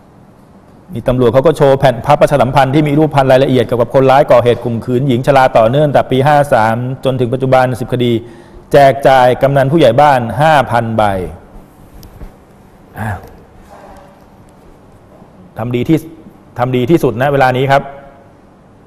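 A man speaks calmly and firmly into a microphone.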